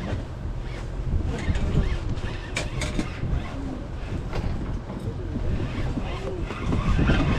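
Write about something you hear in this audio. A spinning reel whirs as a line is reeled in.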